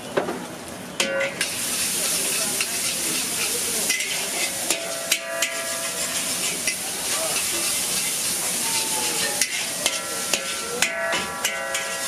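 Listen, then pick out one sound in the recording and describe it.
Food sizzles and hisses loudly in a hot pan.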